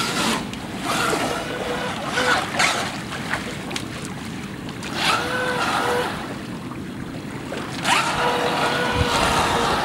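A small model boat's electric motor whines at high speed, rising and falling as it races across the water.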